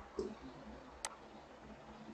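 A computer mouse clicks once.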